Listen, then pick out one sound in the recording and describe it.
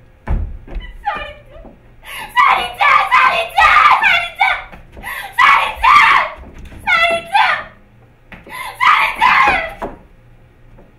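A young woman shouts emotionally, heard through a microphone.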